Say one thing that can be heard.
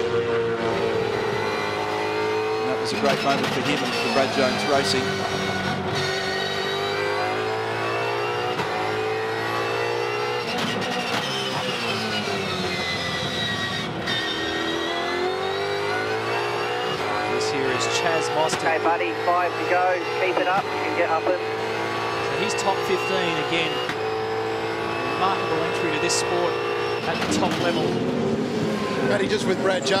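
A racing car engine roars loudly up close, rising and falling in pitch as it speeds up and slows down.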